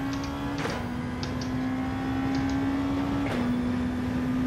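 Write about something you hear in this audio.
A racing car engine drops in pitch briefly as the gears shift up.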